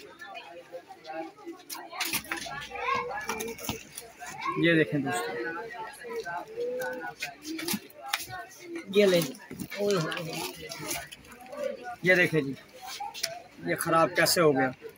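Plastic packets crinkle and rustle as they are handled.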